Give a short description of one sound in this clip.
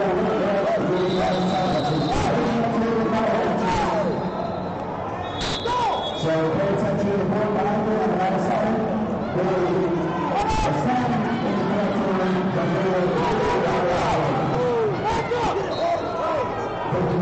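A referee blows a whistle in short blasts.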